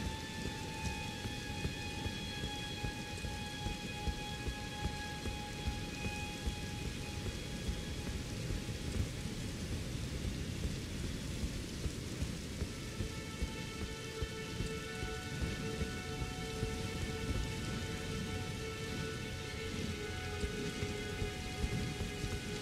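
Footsteps run steadily over stone.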